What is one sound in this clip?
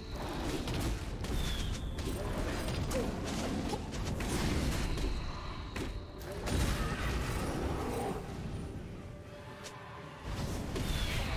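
Weapons clash and magic blasts crackle in a rapid fight.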